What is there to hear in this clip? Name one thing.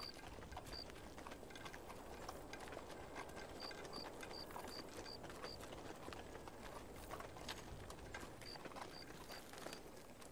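Many footsteps and hooves trudge over dry ground in the distance.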